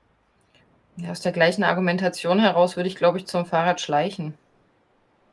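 A woman talks calmly into a microphone.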